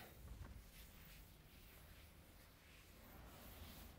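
A cloth duster rubs across a board.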